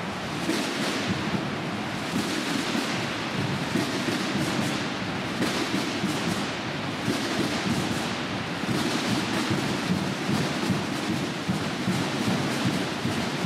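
Many drums beat together in a fast rolling rhythm, echoing in a large hall.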